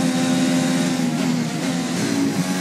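A racing car engine drops in pitch as the car slows for a corner.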